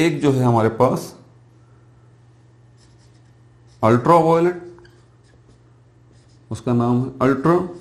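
A man speaks calmly and clearly, close by, explaining in short phrases.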